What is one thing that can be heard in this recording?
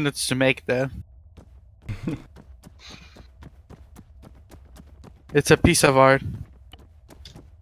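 Quick footsteps run on a hard surface.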